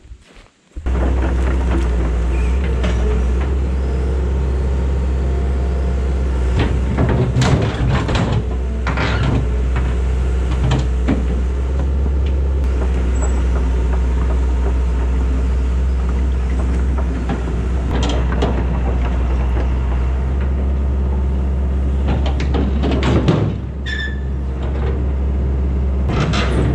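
An excavator's diesel engine runs loudly and steadily close by.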